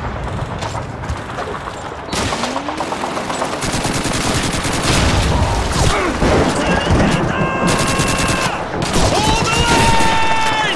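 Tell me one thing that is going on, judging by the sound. Gunfire crackles.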